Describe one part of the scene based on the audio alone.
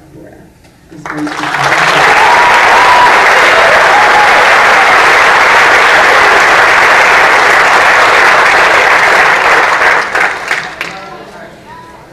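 An audience claps and cheers loudly.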